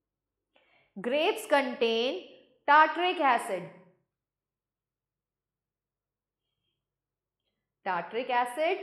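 A woman speaks clearly and calmly, close to a microphone.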